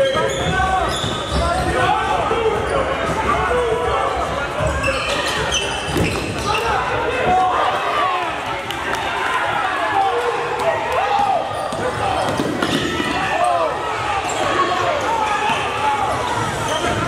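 Sneakers squeak sharply on a hard floor in an echoing gym.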